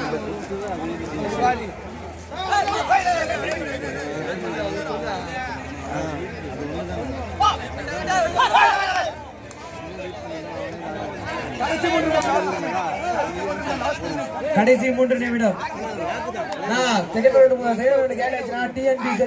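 A young man chants rapidly and without pause.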